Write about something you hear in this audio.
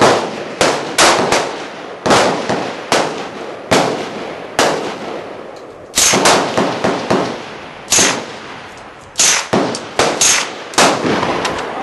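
A rifle fires rapid shots that crack and echo outdoors.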